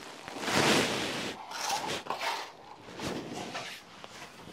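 A trowel scrapes wet plaster.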